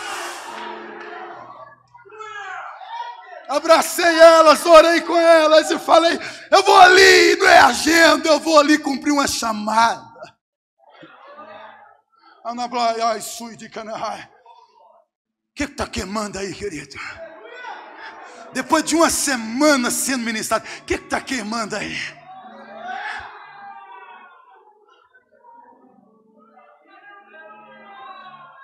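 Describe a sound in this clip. A man preaches forcefully into a microphone, his voice ringing through a loudspeaker in a large echoing hall.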